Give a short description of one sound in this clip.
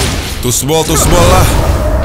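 A fiery explosion bursts loudly.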